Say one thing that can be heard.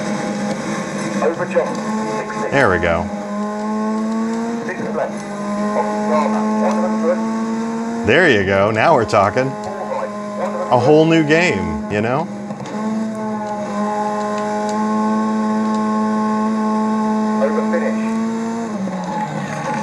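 A car engine drones steadily through a loudspeaker.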